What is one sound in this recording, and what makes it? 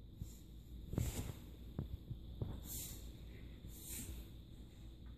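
A dog's paws thump softly on carpet.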